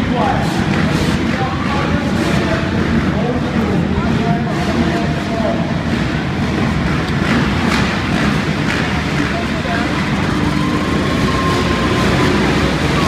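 Dirt bike engines idle and rev loudly in a large echoing arena.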